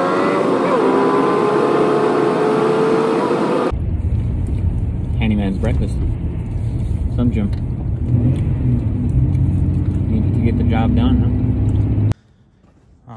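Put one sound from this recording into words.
Tyres and engine rumble steadily as a car drives along a road.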